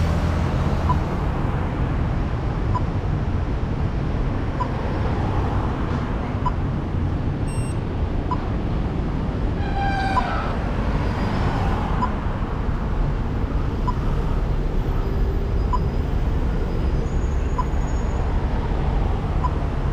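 Wind buffets the microphone steadily.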